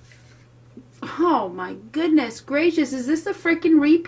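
Cards are laid down softly on a cloth.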